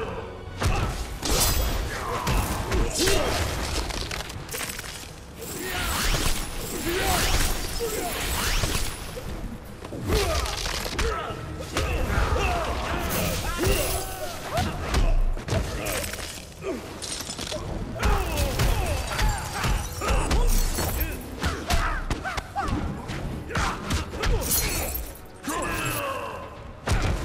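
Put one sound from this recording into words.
Punches and kicks land with heavy thuds again and again.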